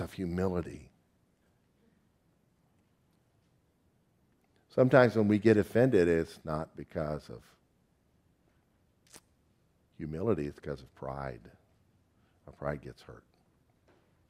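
An older man speaks calmly into a microphone in a large room, pausing between phrases.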